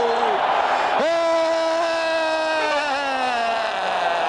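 A man shouts with joy.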